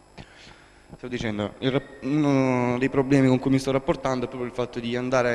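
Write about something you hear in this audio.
A man in the audience speaks with animation through a microphone.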